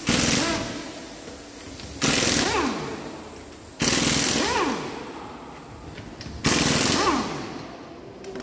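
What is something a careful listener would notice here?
An impact wrench rattles in short, loud bursts, and each burst ends in a falling whine.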